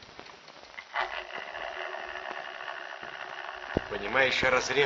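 A radio whistles and crackles as it is tuned.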